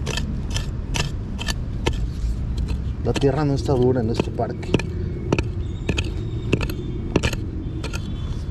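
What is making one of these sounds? A digging tool chops repeatedly into soft soil.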